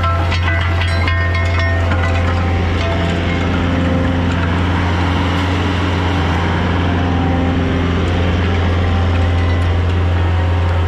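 A rotary tiller grinds and churns through soil and stones.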